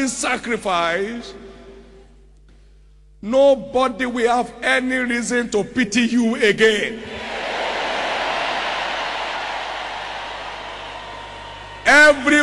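A man preaches loudly and with passion into a microphone in a large hall.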